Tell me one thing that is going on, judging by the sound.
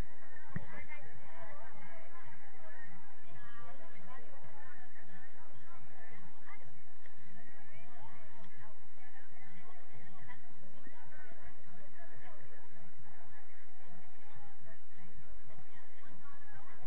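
Young players shout and call to each other across an outdoor field.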